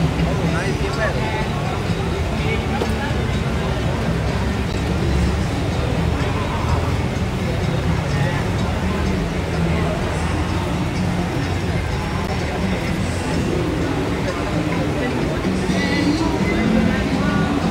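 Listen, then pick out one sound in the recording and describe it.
Many men and women chatter and talk all around.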